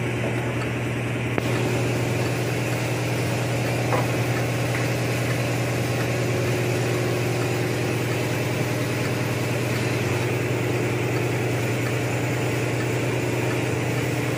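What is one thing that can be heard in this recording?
Metal parts clink and tap under a car.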